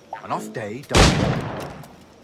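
A cannon blast booms loudly nearby.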